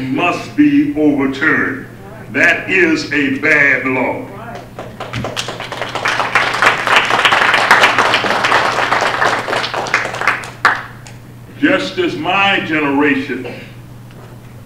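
An elderly man speaks firmly into a microphone.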